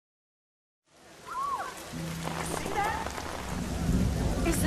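Rain falls outdoors.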